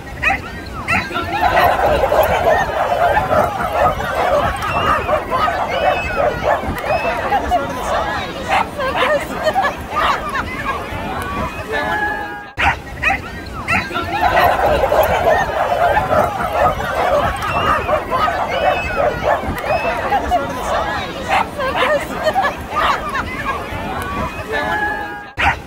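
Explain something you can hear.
A crowd of people cheers and shouts excitedly outdoors.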